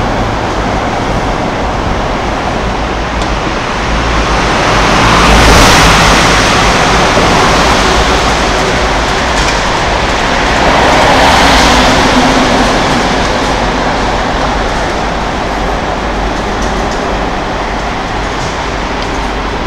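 Vehicles roar past on a nearby road, swelling loud and then fading.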